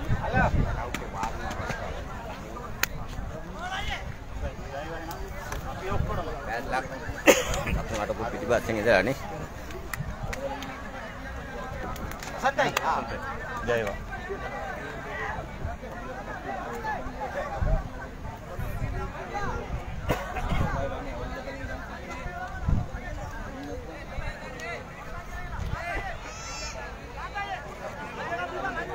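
Several men talk and call out nearby, outdoors.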